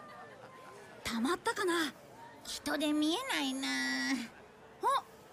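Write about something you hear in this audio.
A boy speaks worriedly.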